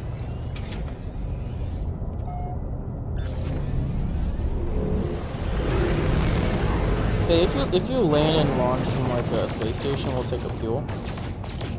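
A spaceship engine rumbles low and grows louder as it speeds up.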